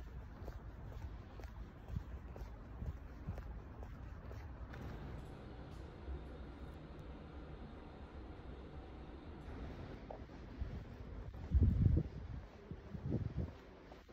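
Shoes step on pavement outdoors.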